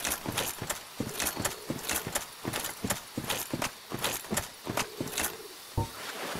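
Armoured footsteps clank quickly on soft ground.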